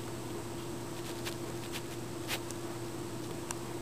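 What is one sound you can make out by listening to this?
A dog scratches and rustles at a pile of bed sheets.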